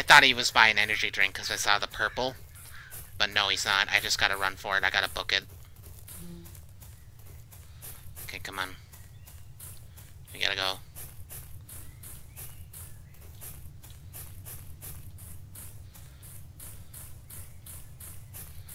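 Footsteps crunch steadily over leaves and grass.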